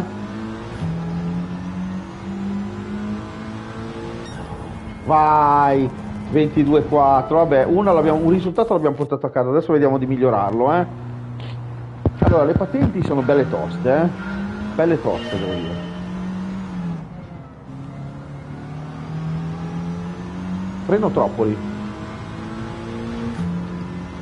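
A racing car engine drones and revs through gear changes.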